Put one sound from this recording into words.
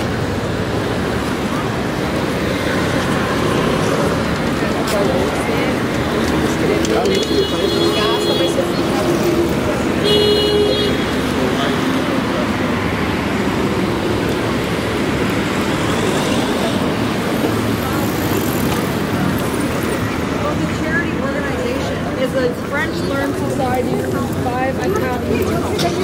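Cars drive past steadily on a busy street outdoors.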